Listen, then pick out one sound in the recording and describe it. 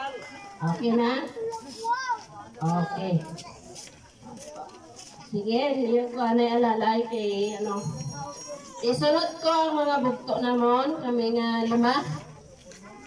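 A woman sings through a microphone and loudspeaker.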